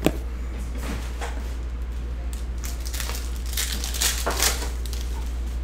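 Foil wrapping crinkles as hands tear open a pack.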